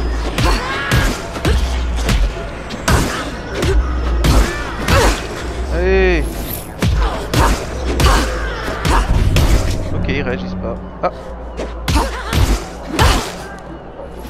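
Heavy punches and blows land in quick bursts.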